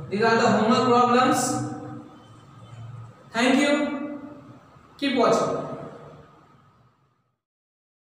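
A young man speaks clearly and calmly, close to a microphone.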